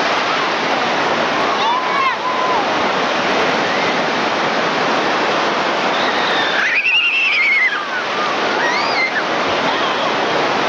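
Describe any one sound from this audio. Waves crash and surf rushes steadily close by.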